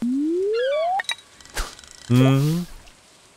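A fishing bobber plops into water.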